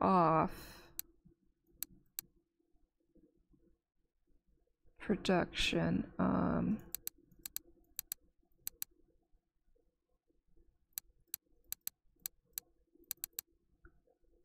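Short interface clicks sound as game buttons are pressed.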